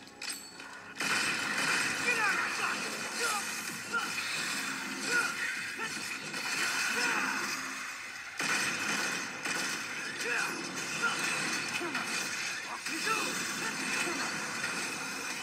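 Video game sword clashes and combat effects burst rapidly.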